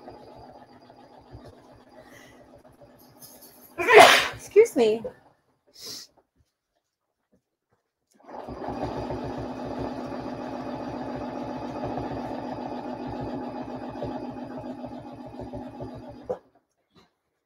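A sewing machine hums and clatters as it stitches steadily.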